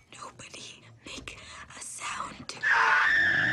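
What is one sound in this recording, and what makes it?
A young woman speaks urgently and frightened.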